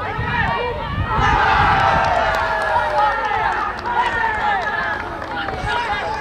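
A small crowd of men cheers loudly and excitedly.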